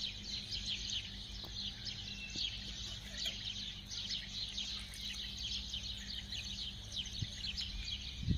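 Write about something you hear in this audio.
Water pours from a pipe and splashes into a shallow puddle.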